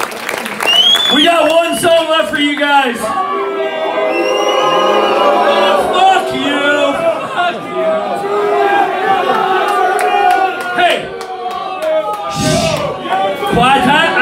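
A man shouts into a microphone over loudspeakers.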